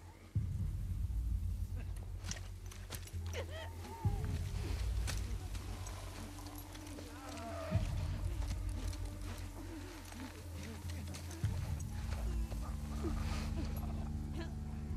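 Tall grass rustles as someone crawls slowly through it.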